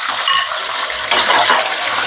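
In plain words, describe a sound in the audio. A metal spatula scrapes against a wok.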